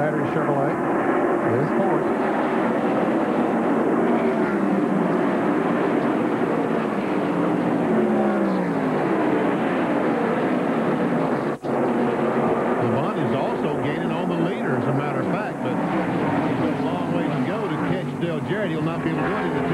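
Race car engines roar at high speed and rise and fall in pitch as they pass.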